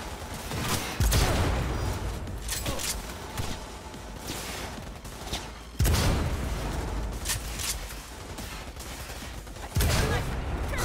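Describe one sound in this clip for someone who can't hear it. A rifle fires loud, booming shots that echo away.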